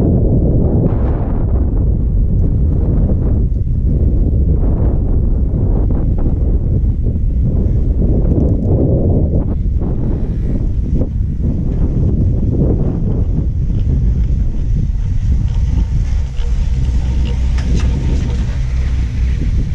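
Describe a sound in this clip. Wind rumbles steadily against a microphone outdoors.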